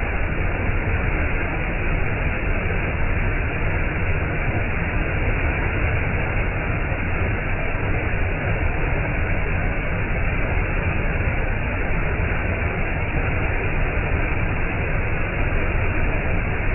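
A waterfall rushes and roars loudly over rocks close by.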